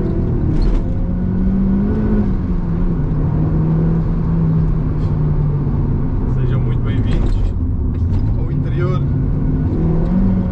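A car engine hums steadily from inside the car, its pitch rising and falling as the car drives.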